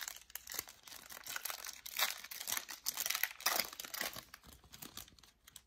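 Gloved hands crinkle and rustle a plastic wrapper close by.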